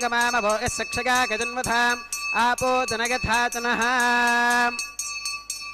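A man chants a prayer in a sung, melodic voice.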